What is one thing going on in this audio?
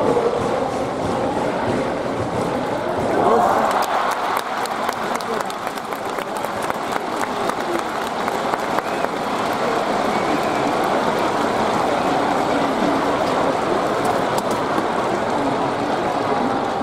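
A large crowd cheers and chants steadily in an open stadium.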